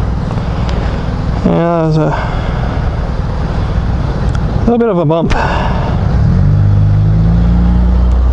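A motorcycle engine rumbles along the street.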